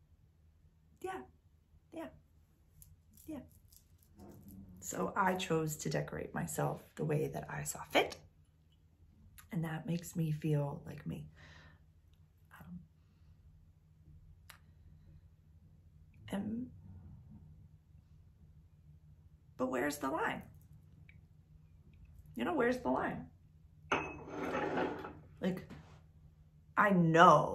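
A young woman talks calmly and close by, in short bursts with pauses.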